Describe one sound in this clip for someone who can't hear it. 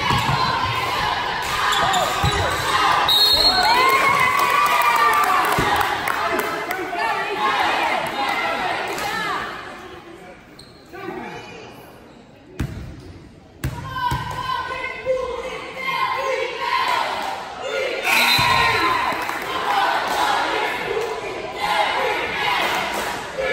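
A crowd in a gym cheers and shouts, echoing around the hall.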